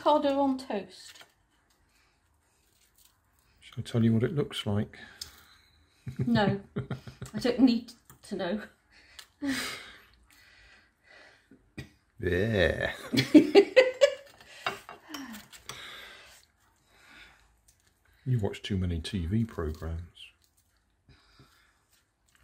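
A fork scrapes and spreads mash onto crisp toast.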